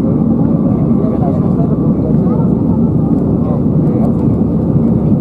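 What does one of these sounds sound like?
Jet engines roar steadily inside an airplane cabin.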